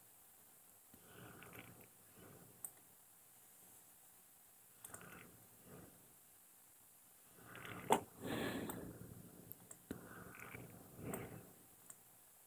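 A man speaks calmly and close to a microphone, in short phrases.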